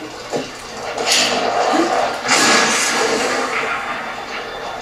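An electric blast crackles and bursts.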